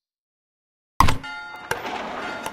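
A game tile drops into place with a thud.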